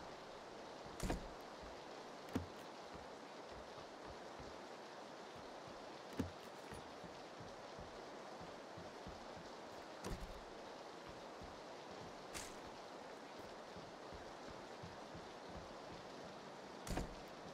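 A door bangs open now and then.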